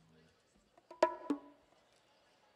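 An electric guitar strums a short chord.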